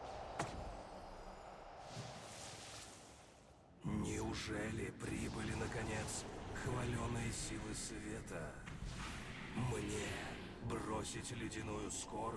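Spell effects crackle and clash as game characters fight.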